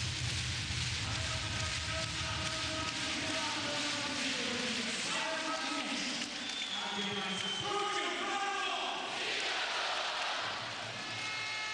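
A large crowd chants and sings loudly.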